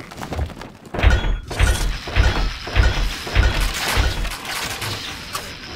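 Marching soldiers tramp with dull, rhythmic thuds.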